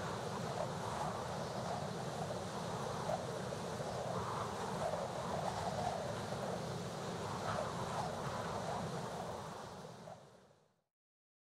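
Wind rushes steadily and then fades away.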